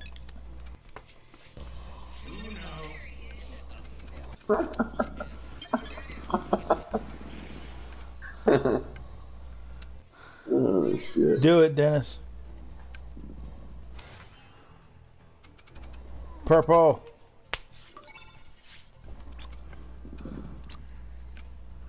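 Playing cards flick and snap down onto a pile.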